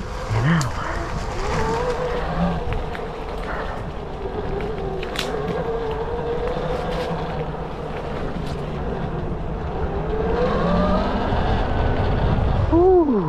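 An electric motorbike's motor whines, rising and falling in pitch.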